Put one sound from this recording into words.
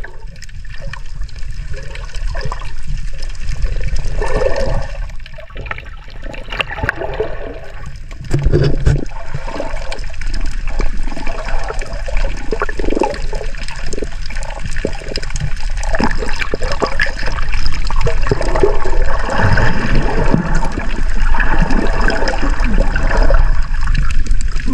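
Water swirls and bubbles underwater close by.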